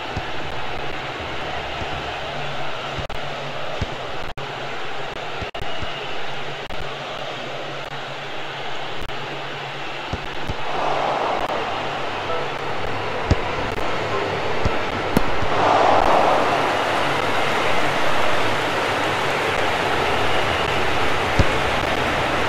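A stadium crowd roars steadily, swelling louder at times.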